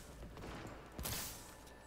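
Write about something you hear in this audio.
A weapon fires a sharp shot.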